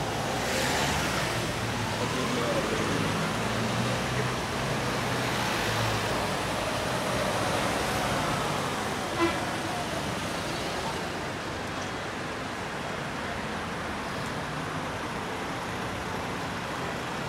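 Cars drive past on a wet road, tyres hissing.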